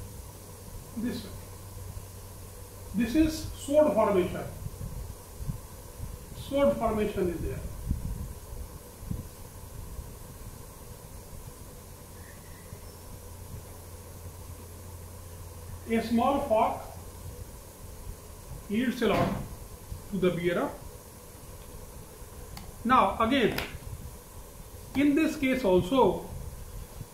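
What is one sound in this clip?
An elderly man speaks calmly, in short bursts with pauses, close by.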